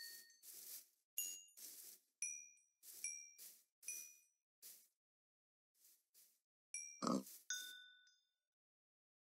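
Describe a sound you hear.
Short sharp game hit sounds land in quick bursts.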